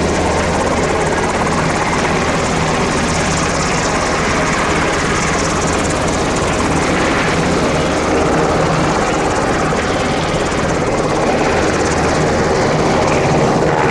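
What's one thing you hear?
Helicopter rotor blades thump steadily.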